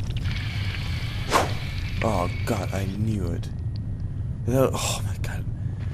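Light footsteps patter on soft ground.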